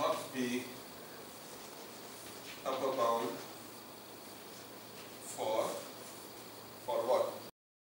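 A man speaks calmly in short phrases, close by.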